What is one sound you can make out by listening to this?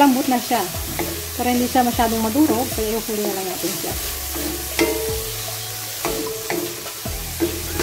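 A wooden spatula scrapes and clatters against a metal wok.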